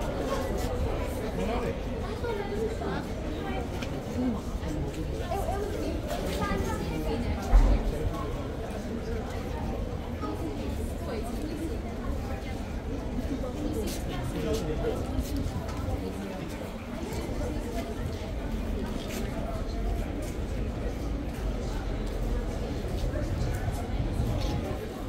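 Adult visitors murmur and chatter in the background outdoors.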